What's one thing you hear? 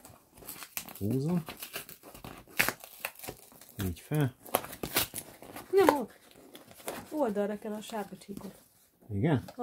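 Packing tape rips and cardboard tears.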